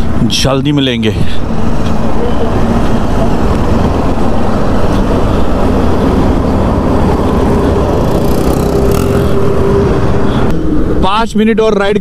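A motorcycle engine revs up sharply, rising in pitch.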